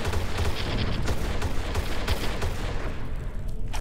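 Quick footsteps run on a stone floor in an echoing corridor.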